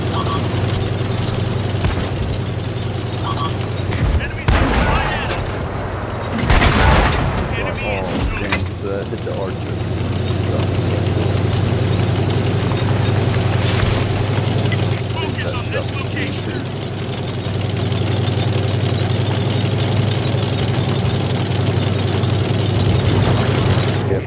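Tank tracks clank and rattle over the ground.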